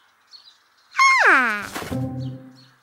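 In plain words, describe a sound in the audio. A cartoon whistle slides quickly downward in pitch.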